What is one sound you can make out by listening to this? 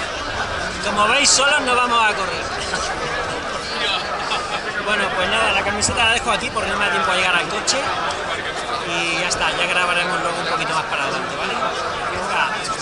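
A man talks with animation close to the microphone.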